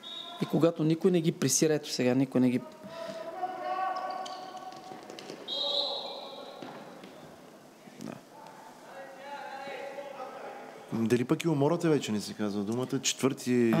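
Plastic sticks clack against a ball in an echoing hall.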